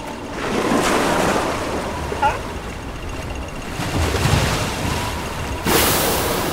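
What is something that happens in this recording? Sea water laps against ice.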